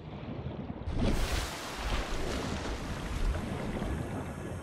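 Water splashes and rushes as a swimmer breaks the surface and dives back under.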